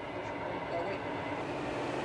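A man speaks into a radio handset.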